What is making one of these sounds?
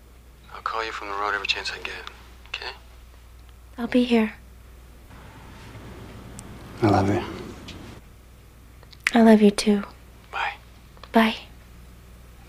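A woman speaks softly and warmly.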